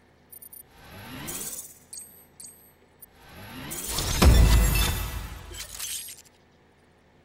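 Rising electronic whooshes sweep up as a game score tallies.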